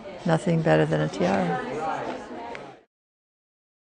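An elderly woman speaks warmly and close up.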